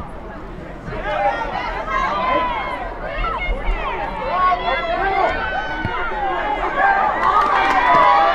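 A crowd of spectators cheers and shouts, growing louder.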